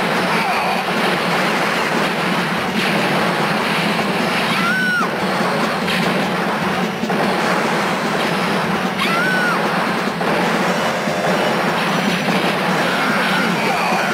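Video game explosions boom and crackle.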